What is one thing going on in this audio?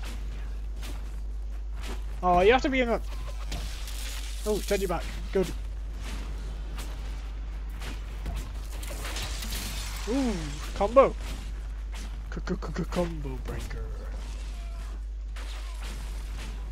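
Spells and weapons clash with sharp bursts and whooshes in a fight.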